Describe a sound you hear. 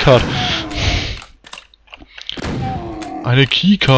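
A shotgun blasts loudly.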